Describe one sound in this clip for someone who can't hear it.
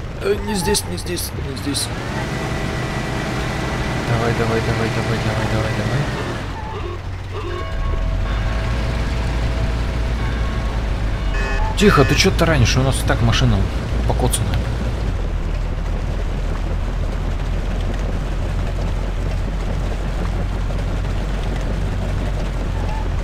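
A vintage car engine hums as it drives along a street.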